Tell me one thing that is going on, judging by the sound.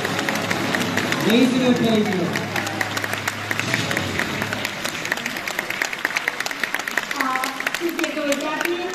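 A crowd claps in a large echoing hall.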